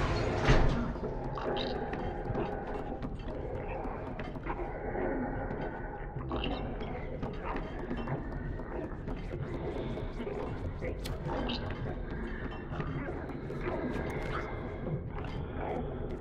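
Small footsteps patter across a wooden floor.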